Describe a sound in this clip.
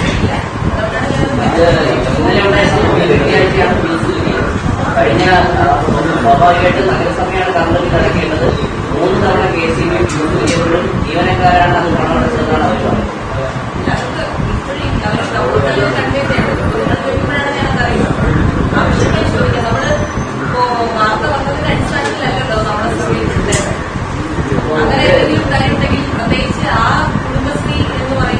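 A young woman speaks steadily into microphones in a room with a slight echo.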